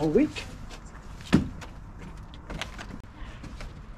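Thumps as a man climbs into a van.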